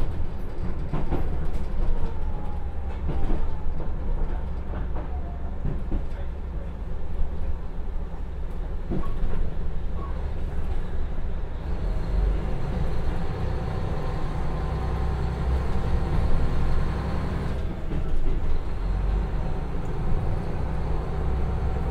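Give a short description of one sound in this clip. Train wheels click and clatter over the rail joints.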